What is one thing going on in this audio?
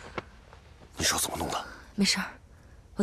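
An elderly man asks a question quietly, close by.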